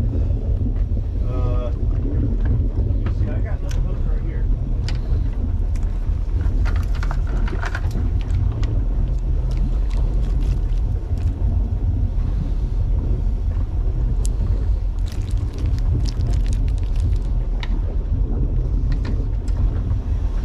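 Water laps against the side of a boat.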